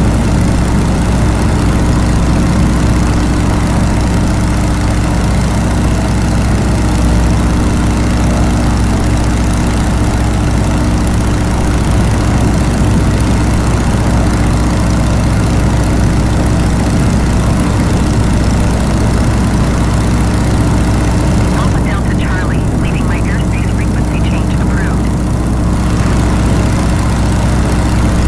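A propeller engine drones steadily and loudly.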